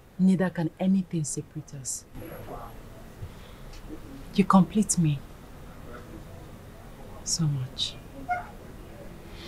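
A woman speaks softly and warmly up close.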